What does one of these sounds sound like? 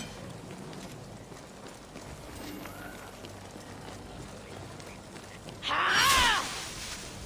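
Footsteps run across stone paving.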